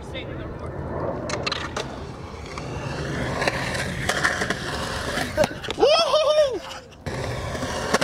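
Skateboard wheels roll roughly over concrete, growing louder as they approach.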